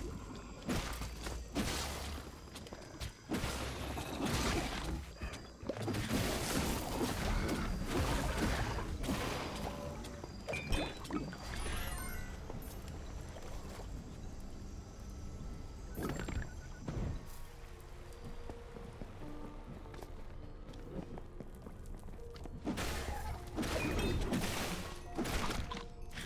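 Magic blasts crackle and zap in quick bursts during a fight.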